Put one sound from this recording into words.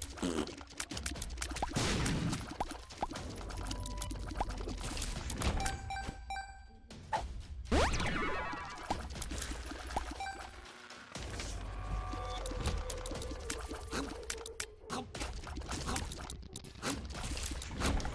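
Video game sound effects of shots and splats sound rapidly.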